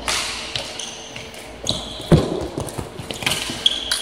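A goalie drops to the floor with a thud.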